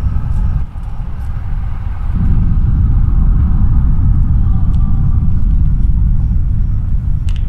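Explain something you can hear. Rapid gunfire rattles and booms nearby.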